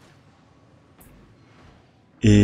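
A magic blade slashes with a sparkling whoosh.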